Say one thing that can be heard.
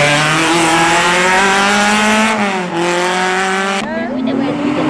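A race car engine revs hard as it accelerates away uphill.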